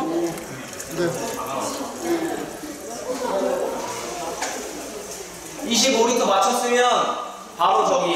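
Liquid pours and splashes into a container.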